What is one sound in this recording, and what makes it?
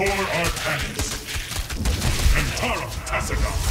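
A magical blast crackles and hums.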